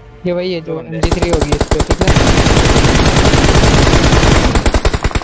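Rapid gunfire rattles from a game.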